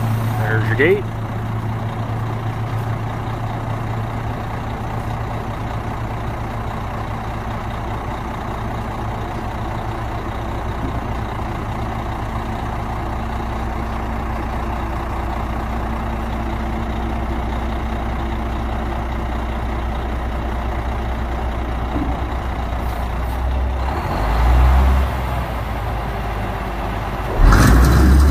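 A dump truck's hydraulic hoist whines as the bed rises.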